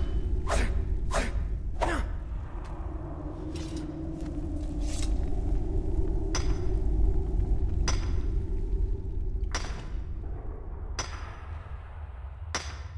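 A pickaxe strikes rock with sharp metallic clinks.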